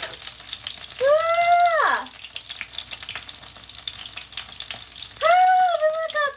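A young woman lets out drawn-out, sing-song calls close up.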